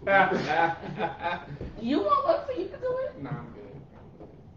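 Several adults laugh together close to a microphone.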